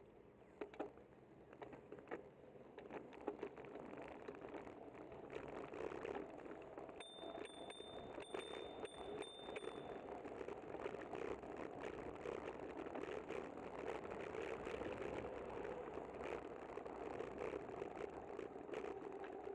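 Wind rushes steadily, growing louder as the ride goes on.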